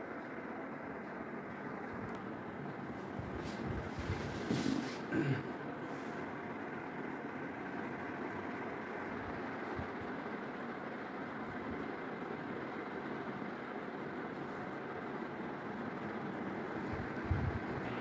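A ceiling fan whirs steadily overhead.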